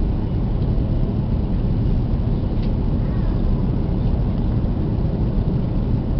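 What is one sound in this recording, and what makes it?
Jet engines roar steadily, heard from inside an aircraft cabin.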